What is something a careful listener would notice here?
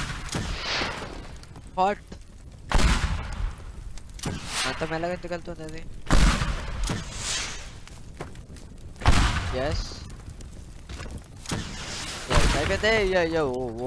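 Rockets explode with loud, booming blasts, one every few seconds.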